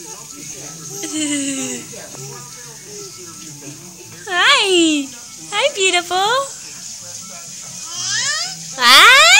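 A baby babbles and squeals happily close by.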